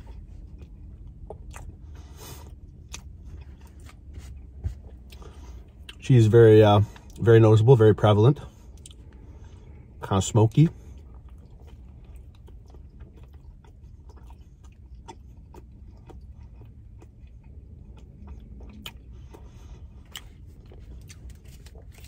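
A man chews food with soft smacking sounds.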